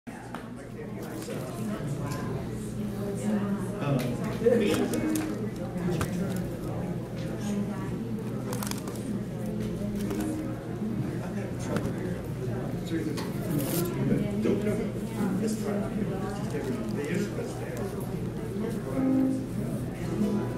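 An upright bass plucks a walking line.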